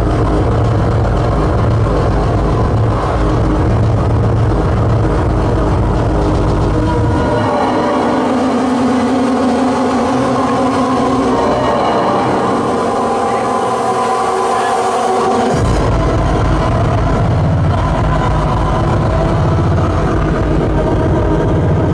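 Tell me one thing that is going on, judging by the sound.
Loud electronic dance music with a heavy thumping beat plays through speakers.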